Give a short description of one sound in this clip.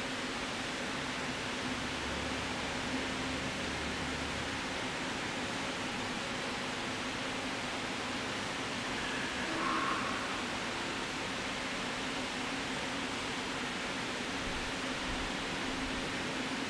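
A crowd murmurs softly in a large echoing hall.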